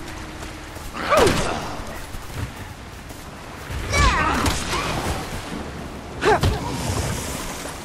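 A monster groans and snarls close by.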